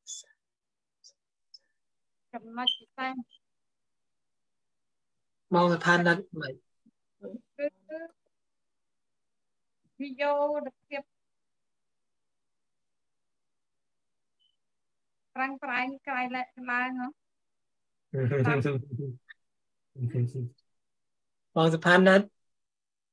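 A woman talks over an online call.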